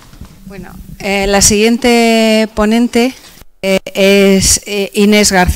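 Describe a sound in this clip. A woman speaks calmly and loudly through a microphone in a large hall.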